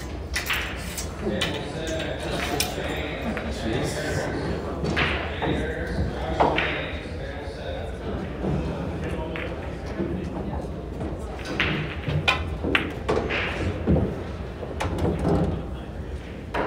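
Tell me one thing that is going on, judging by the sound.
Many people murmur and talk at a distance.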